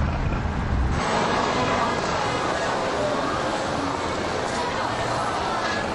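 A crowd of people chatters on a busy street.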